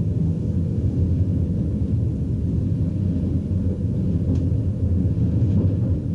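Wheels click over rail joints.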